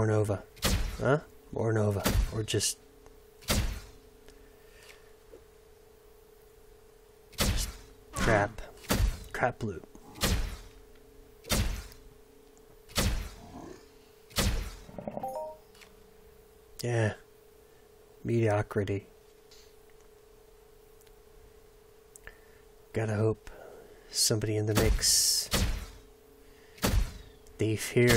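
Energy weapon shots fire in short bursts with ringing tails.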